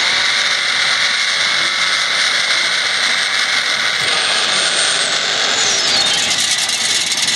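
Tyres screech loudly as a car spins its wheels in a burnout.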